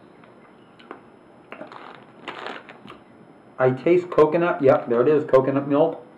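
A plastic bag crinkles in a man's hands.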